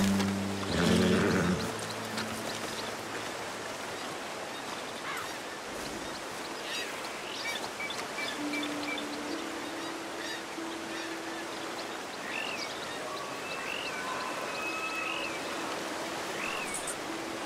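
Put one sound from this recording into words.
Footsteps crunch on dirt and gravel.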